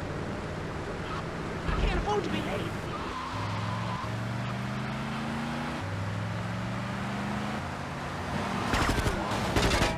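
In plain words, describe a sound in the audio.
A car engine hums steadily, shifting pitch as the car speeds up.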